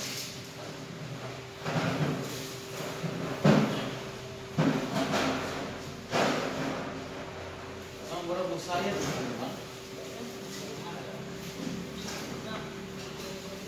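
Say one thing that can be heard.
Plastic wrapping rustles and crinkles.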